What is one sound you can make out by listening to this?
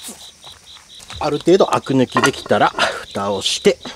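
A heavy metal lid clanks onto a pot.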